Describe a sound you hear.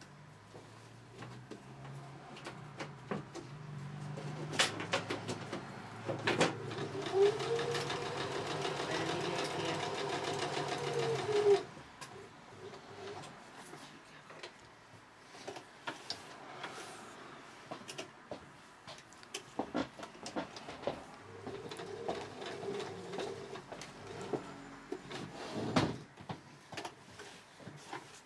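Fabric rustles as hands move it.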